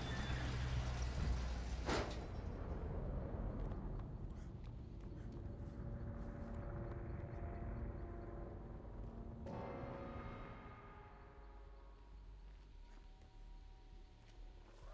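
Footsteps crunch softly on dry leaves and ground.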